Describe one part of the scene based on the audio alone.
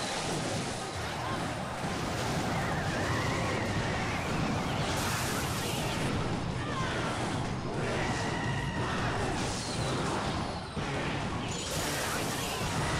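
Video game battle sounds and music play steadily.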